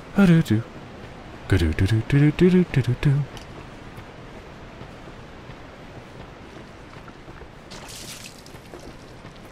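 Footsteps run over stone.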